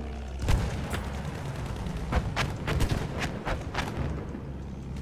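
Machine guns fire in sharp bursts.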